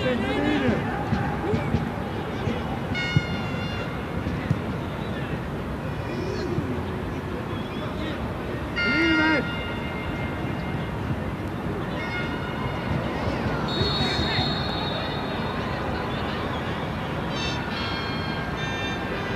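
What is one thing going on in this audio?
A stadium crowd murmurs and cheers in a large open space.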